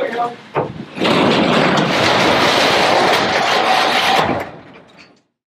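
A garage door rattles and rumbles as it rolls.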